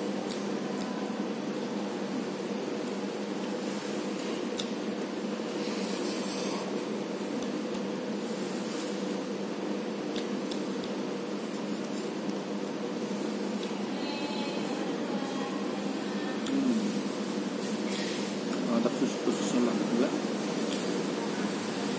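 A man slurps and chews noodles.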